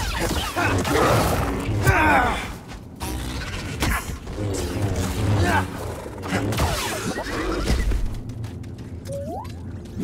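Blade strikes land with sharp hits.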